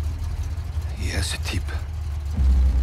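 A young man speaks weakly.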